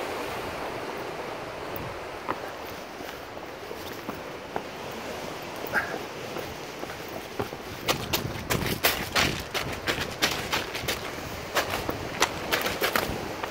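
Waves wash over rocks and break on the shore.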